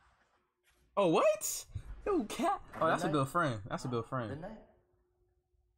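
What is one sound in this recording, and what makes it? A young man talks loudly.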